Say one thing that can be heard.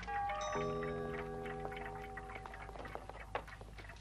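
A clock chimes with ringing bell tones.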